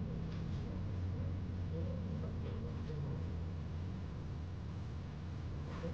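A lamp's dial clicks as a hand turns it.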